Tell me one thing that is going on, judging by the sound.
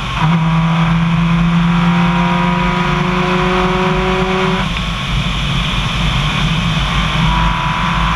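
Tyres rumble over a gravel road.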